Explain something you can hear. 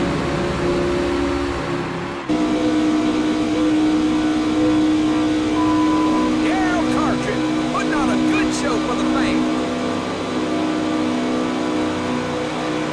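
Racing car engines drone steadily at high speed.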